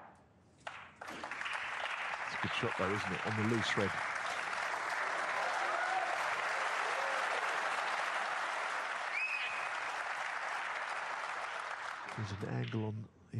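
A large audience applauds steadily, then the applause fades away.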